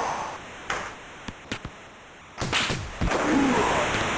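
Sticks click sharply against a puck.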